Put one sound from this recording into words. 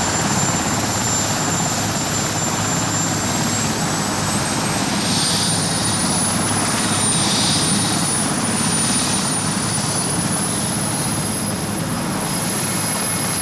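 A helicopter's engine roars close by as its rotor spins up with a steady, loud beating whoosh.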